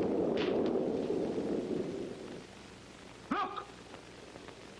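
A middle-aged man speaks, heard through an old, hissy film soundtrack.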